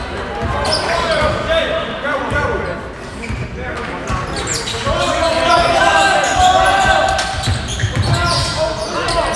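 A crowd of spectators talks and cheers nearby.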